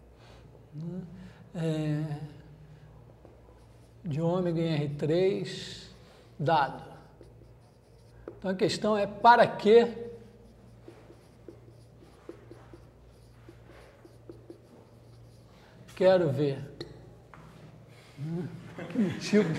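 A man speaks calmly, pausing often.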